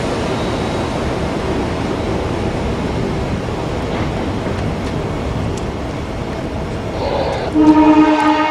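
A train rumbles past nearby.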